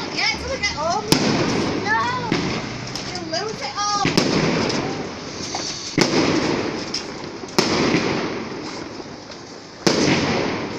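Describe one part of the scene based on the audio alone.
Fireworks bang and crackle loudly overhead, echoing between buildings.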